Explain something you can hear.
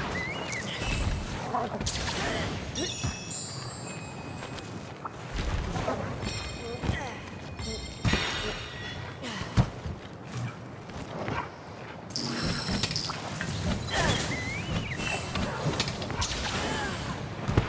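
Game sound effects sparkle and chime as items are gathered.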